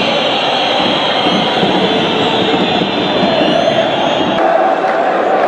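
Men shout at each other during a scuffle.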